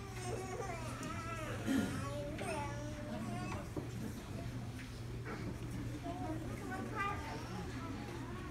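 Children chatter and call out in a large room.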